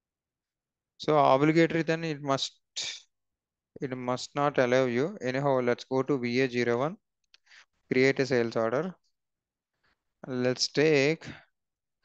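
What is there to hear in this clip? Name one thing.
A young man talks calmly into a close headset microphone.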